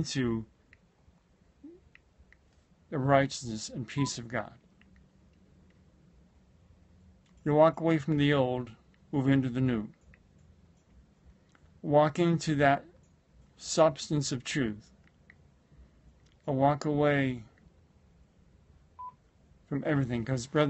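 A middle-aged man speaks calmly and close to the microphone, in short phrases with pauses.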